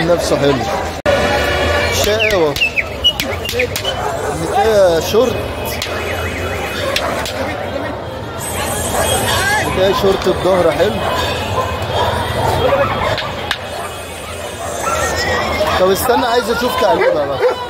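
A large dog barks loudly and repeatedly.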